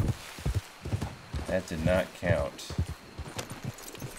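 A horse's hooves thud on grass.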